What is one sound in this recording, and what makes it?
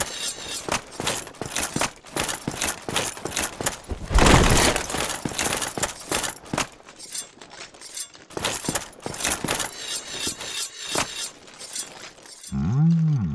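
Heavy armoured footsteps clank on stone.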